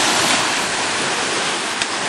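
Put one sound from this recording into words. A skimboard slides over wet sand and shallow water.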